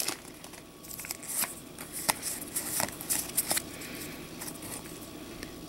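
Cards shuffle and click against each other.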